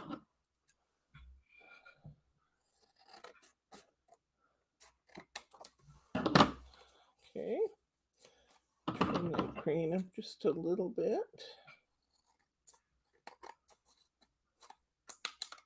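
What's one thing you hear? Scissors snip through card.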